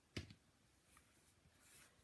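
A small sponge dabs and taps on paper.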